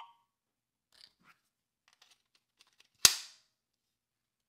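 A plastic toy clicks and snaps as its parts are twisted.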